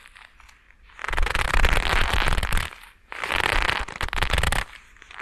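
Gloves crinkle and rustle very close by.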